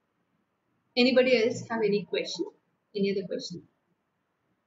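A young woman speaks briefly and calmly into a nearby microphone.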